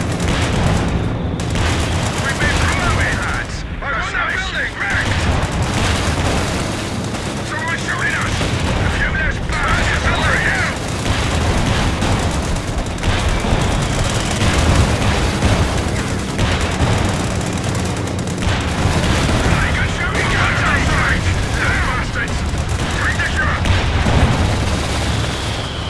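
Explosions boom and rumble throughout a battle.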